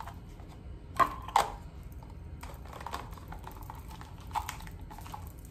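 A plastic bottle clicks and knocks.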